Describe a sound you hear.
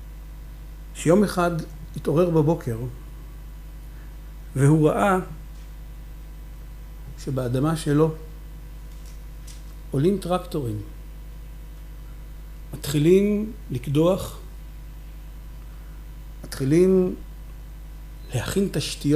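A man speaks slowly into a microphone with long pauses, heard through loudspeakers in a hall.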